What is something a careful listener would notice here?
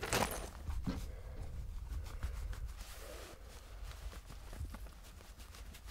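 Leather gloves rustle as they are pulled on.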